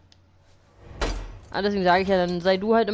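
A wrench clanks against a metal lock.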